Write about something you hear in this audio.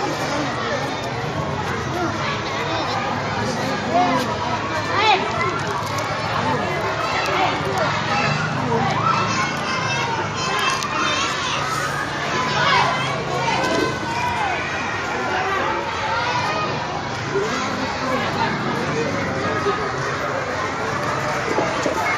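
Several young girls chatter with animation close by.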